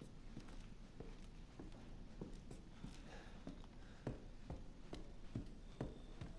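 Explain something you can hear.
Slow footsteps thud on old wooden floorboards.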